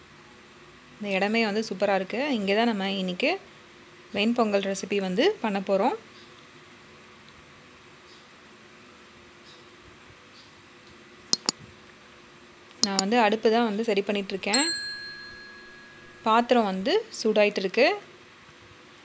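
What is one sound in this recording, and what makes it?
A woman talks close by, in short bursts.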